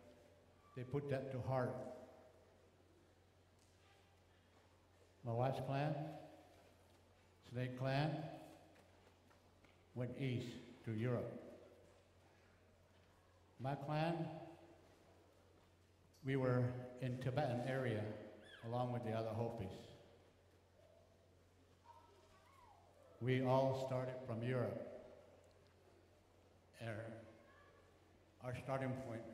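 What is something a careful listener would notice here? An elderly man speaks slowly into a microphone, in short bursts with long pauses, heard through loudspeakers.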